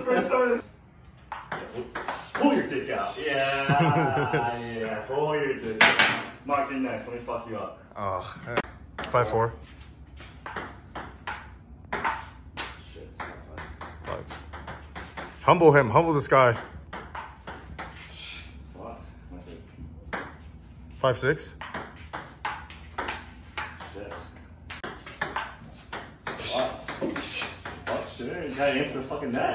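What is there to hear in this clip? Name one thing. A ping pong ball clicks back and forth off paddles and the table.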